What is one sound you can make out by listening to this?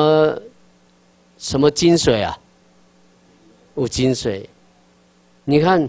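A middle-aged man speaks calmly into a microphone over a loudspeaker, in short phrases with pauses.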